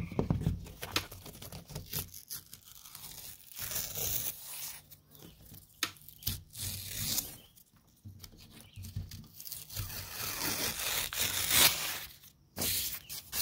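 Paper tears as it is peeled from a wall.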